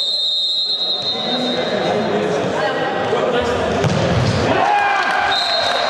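A football is kicked hard in an echoing hall.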